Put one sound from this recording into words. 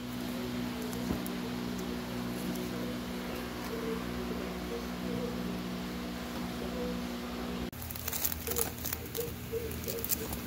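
Comic books in plastic sleeves rustle and crinkle as a hand flips through them.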